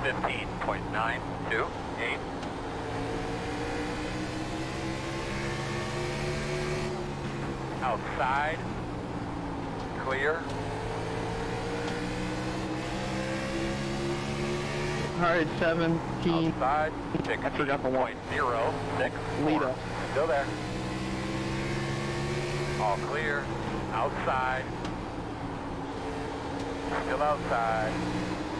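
A race car engine drones steadily, its pitch slowly rising and falling.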